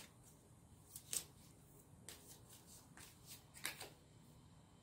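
Cards shuffle and slap softly together in a person's hands.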